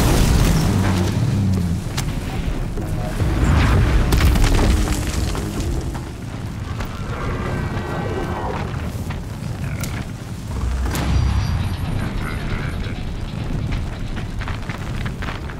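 Fire crackles and roars from a burning machine.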